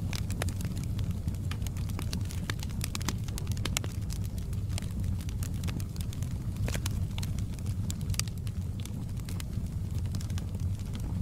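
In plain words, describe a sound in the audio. Burning logs crackle and pop throughout.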